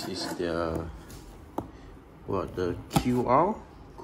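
Cardboard rubs and taps as a flat box is lifted.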